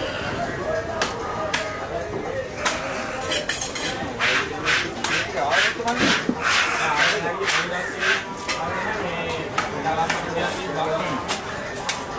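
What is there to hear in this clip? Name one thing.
A cleaver chops through fish on a wooden block.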